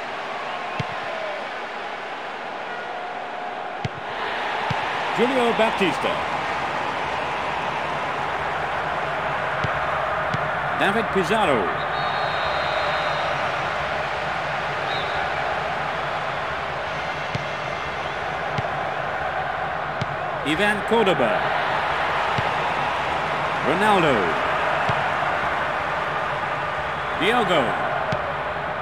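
Players kick a football across a pitch with dull thuds.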